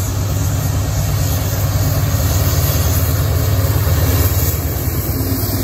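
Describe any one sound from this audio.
A diesel locomotive engine rumbles deeply as a train approaches and passes close by.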